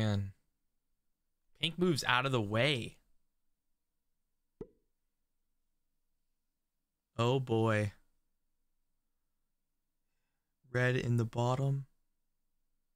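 A young man speaks with animation in short bursts, close to a microphone.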